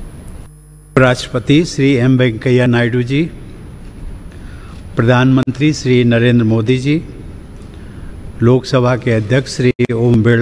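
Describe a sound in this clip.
An elderly man speaks slowly and formally into a microphone.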